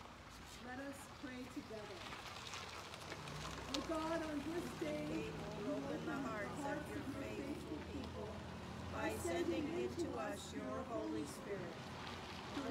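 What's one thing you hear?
An elderly woman speaks with animation through a microphone.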